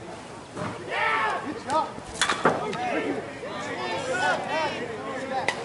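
Men shout and cheer across an open field.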